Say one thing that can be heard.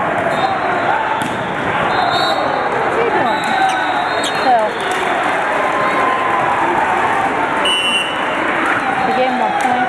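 A volleyball thuds off a player's hands.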